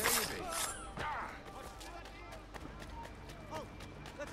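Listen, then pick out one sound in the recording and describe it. Footsteps run quickly across hard stone.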